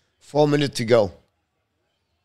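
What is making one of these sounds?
An older man speaks briefly into a close microphone.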